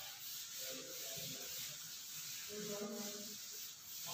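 A cloth eraser rubs across a board.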